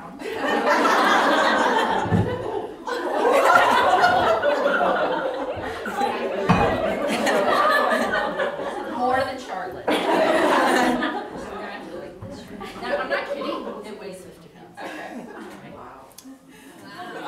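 A woman speaks to an audience through a microphone in an echoing room.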